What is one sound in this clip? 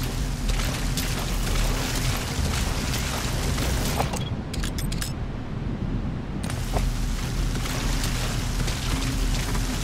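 A man crawls through grass, rustling it.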